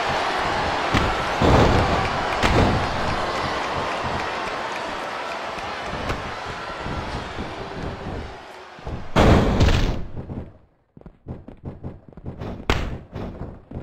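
Heavy blows and bodies thud onto a wrestling ring.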